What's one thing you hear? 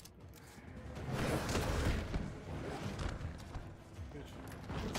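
A zombie snarls and growls while grappling.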